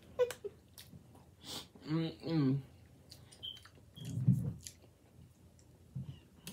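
A woman chews food with wet smacking sounds close to a microphone.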